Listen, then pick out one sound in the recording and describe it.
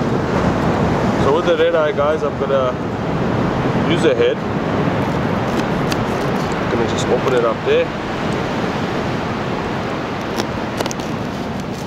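Waves roll onto a beach with a steady rush.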